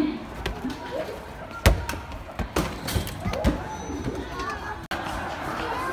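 Basketballs thump against hoops and bounce.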